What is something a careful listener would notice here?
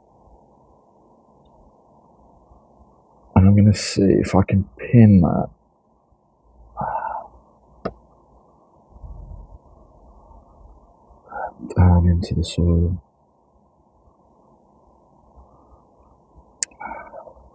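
Fingers rustle softly through the needles of a small tree.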